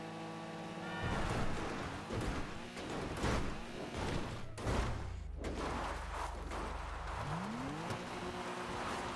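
Tyres rumble and crunch over rough dirt and brush.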